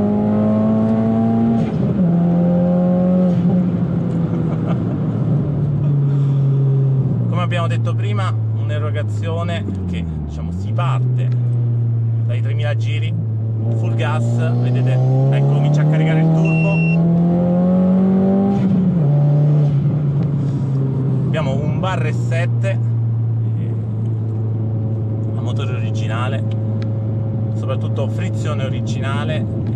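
A car engine drones and rises and falls in pitch as the car speeds up and shifts gears.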